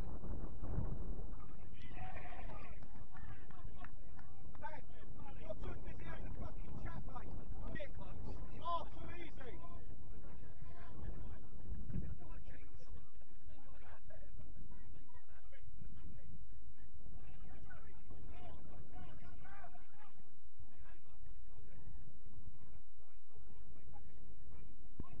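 Young men shout to each other across an open field, heard from a distance.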